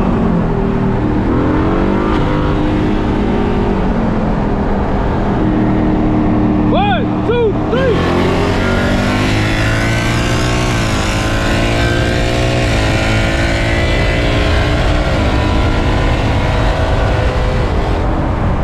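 Another car's engine roars close alongside, rising in pitch as it accelerates.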